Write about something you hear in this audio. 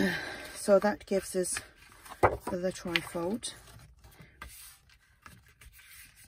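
Paper slides and rustles on a cutting mat.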